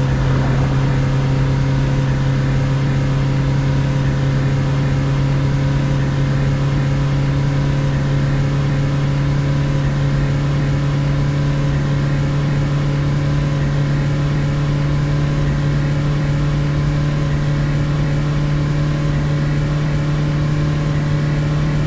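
Tyres roll on the road with a steady rumble.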